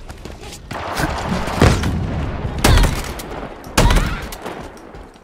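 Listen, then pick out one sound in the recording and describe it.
An energy weapon fires in loud, sharp bursts.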